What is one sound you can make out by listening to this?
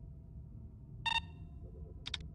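An electronic console beeps as it switches off.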